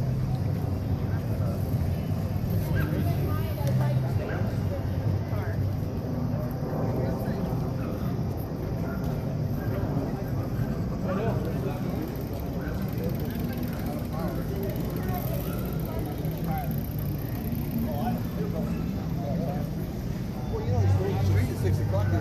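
Men and women chat nearby in a lively outdoor crowd.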